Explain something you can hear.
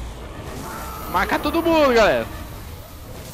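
A creature roars loudly close by.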